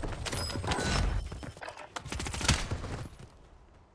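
Gunfire and explosions crack loudly in a game.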